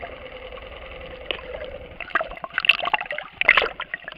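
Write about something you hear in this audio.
Water splashes and bubbles close by.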